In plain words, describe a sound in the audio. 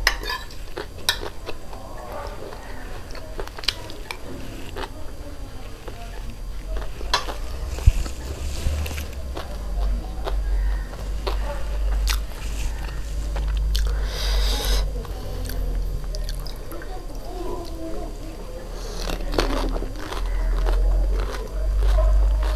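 A young woman chews crunchy snack food close to a microphone.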